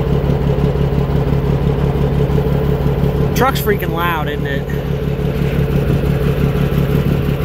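A tractor engine drones close by.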